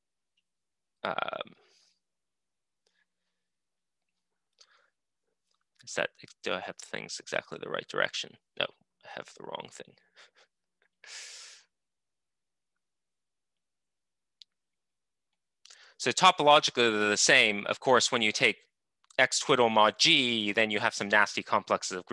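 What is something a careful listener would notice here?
A man speaks calmly through an online call microphone, explaining.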